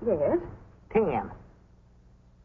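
A middle-aged woman laughs close by.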